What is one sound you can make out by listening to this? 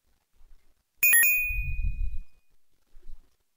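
A bright electronic chime rings once.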